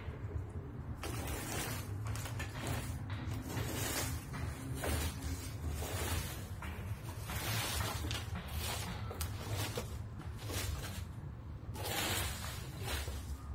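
A rake scrapes and rustles through dry leaves on the ground.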